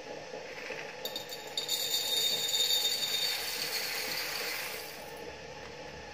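An espresso machine hisses loudly as steam froths milk.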